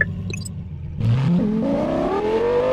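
A car engine revs up as the car pulls away.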